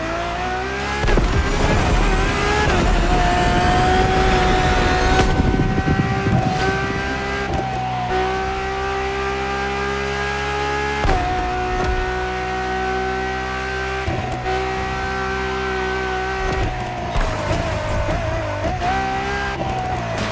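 A sports car engine roars at high revs, shifting gears as it accelerates.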